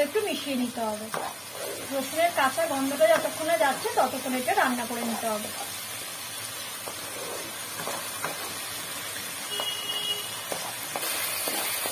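A wooden spatula scrapes and stirs thick paste in a pan.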